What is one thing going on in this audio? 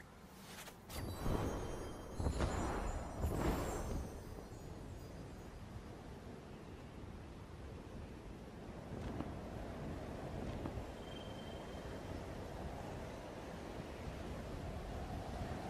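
A soft rushing whoosh of wind sweeps past during a glide.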